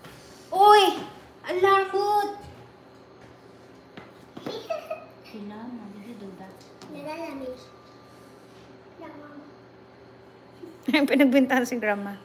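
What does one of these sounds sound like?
A young girl speaks brightly and excitedly close by.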